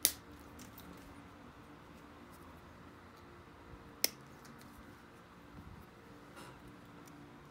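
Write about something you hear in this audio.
A pressure flaker clicks and scrapes against a stone blade as flakes snap off.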